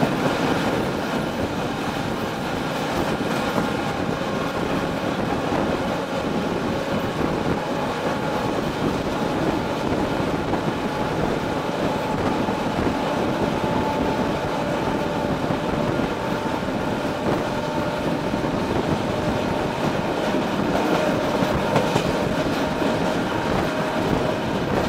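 Wheels clatter over rail joints and switches.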